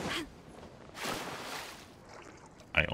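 Water splashes as a figure wades through it.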